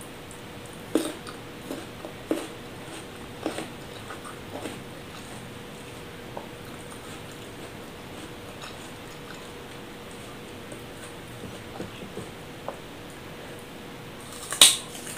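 A young woman crunches and chews food close to a microphone.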